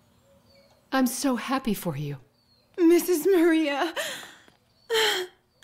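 A young woman speaks quietly close by.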